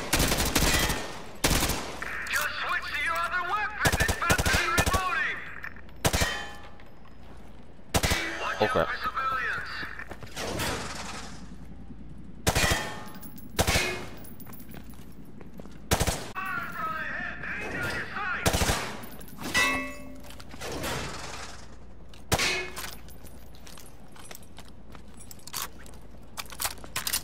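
Gunshots ring out sharply in quick bursts.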